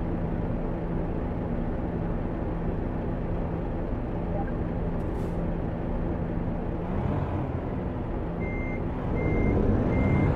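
A truck engine rumbles at a steady idle.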